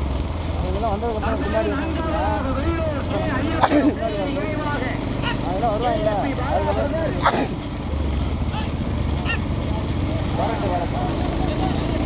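Men shout loudly at running bulls.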